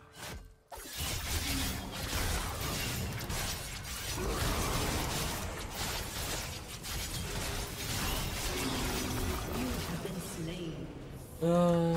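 Fantasy battle sounds of spells blasting and swords clashing rise in a flurry.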